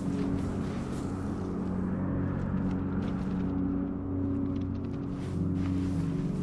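Soft footsteps shuffle through sand.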